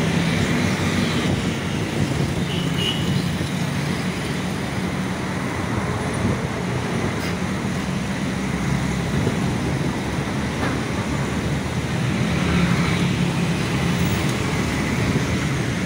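Motorbike engines buzz past close by.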